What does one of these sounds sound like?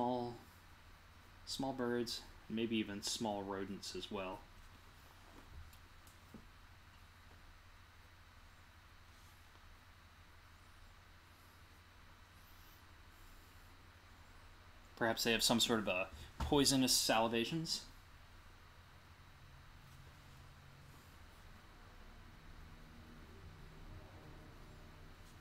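A pen scratches lightly on paper.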